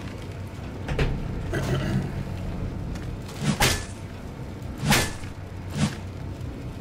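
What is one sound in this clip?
Sharp blows of a melee weapon strike repeatedly.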